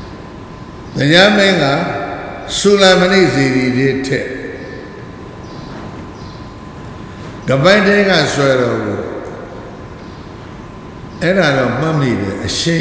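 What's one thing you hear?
An elderly man speaks slowly and forcefully into a microphone, in short bursts with pauses.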